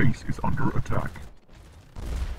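Rapid gunfire crackles.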